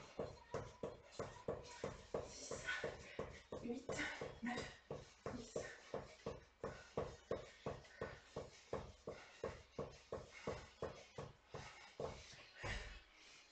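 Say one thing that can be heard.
Feet tap quickly and rhythmically on a hard floor.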